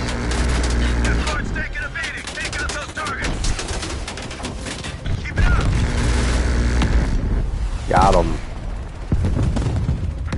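Explosions boom on the ground.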